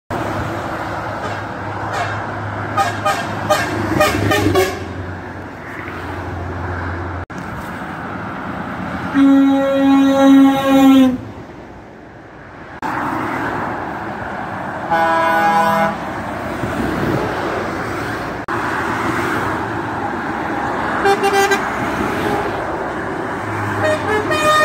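Heavy motorway traffic roars steadily past close by.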